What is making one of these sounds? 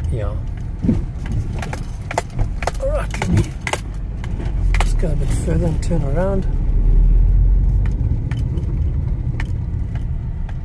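A car engine rumbles steadily from inside the car as it drives.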